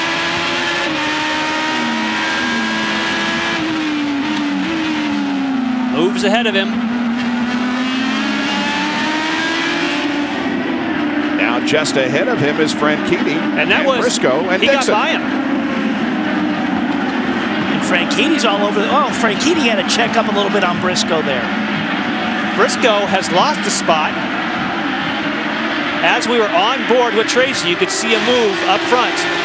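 A race car engine screams at high revs, rising and falling as it shifts gears.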